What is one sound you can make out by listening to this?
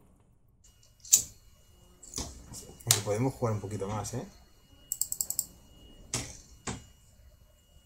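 A game chimes and clicks as an object is selected.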